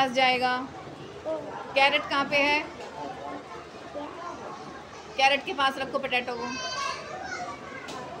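A young child talks in short bursts close to a microphone.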